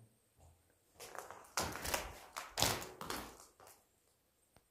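Footsteps crunch on debris in an empty, echoing room.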